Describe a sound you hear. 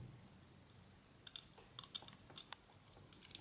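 Plastic parts click and rattle softly as they are handled.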